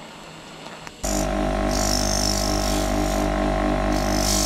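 A bench grinder whirs steadily.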